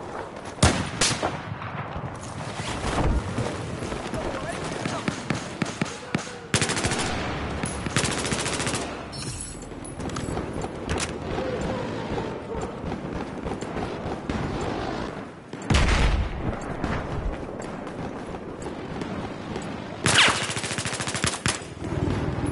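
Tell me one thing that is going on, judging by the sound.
Gunfire cracks in loud bursts.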